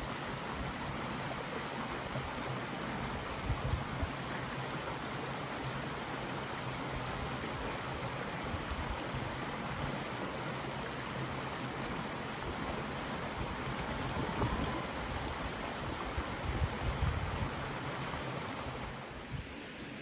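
A shallow stream rushes and babbles steadily over stones.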